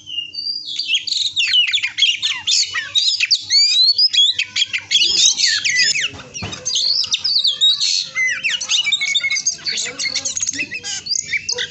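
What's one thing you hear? A caged songbird sings a fast, busy stream of chirps and whistles close by.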